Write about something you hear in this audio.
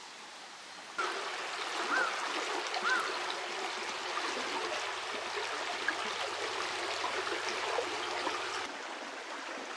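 Shallow water ripples and trickles over stones.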